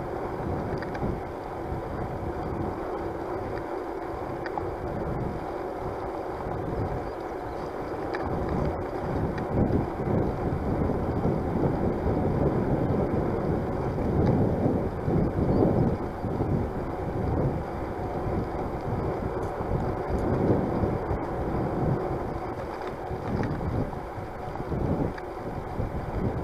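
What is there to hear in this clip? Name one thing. Wind rushes and buffets against the microphone, outdoors.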